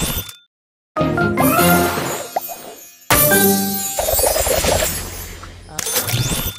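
A cheerful game jingle plays with sparkling chimes.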